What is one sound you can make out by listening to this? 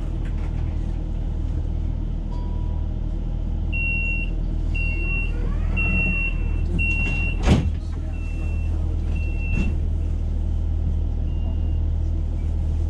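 A train engine hums steadily with a low drone.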